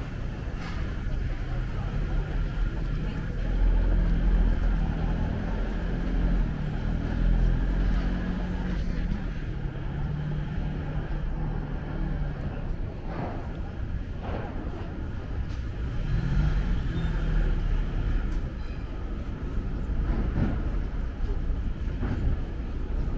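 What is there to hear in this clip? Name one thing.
Footsteps tap on pavement close by.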